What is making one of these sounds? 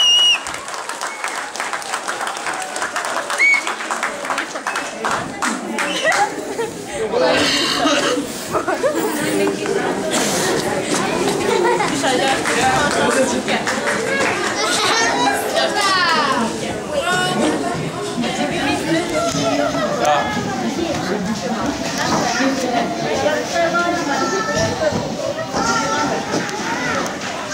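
A crowd of men and women talk and cheer loudly all around.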